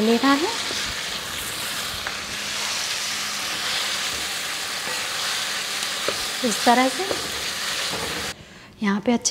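A wooden spoon scrapes and stirs thick food in a metal pan.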